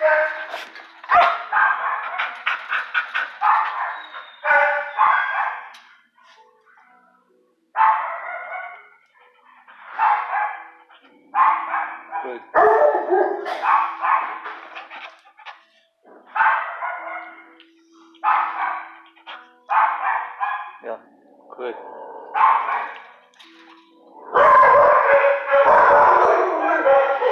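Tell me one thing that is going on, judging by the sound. A dog whines and yelps close by in short bursts.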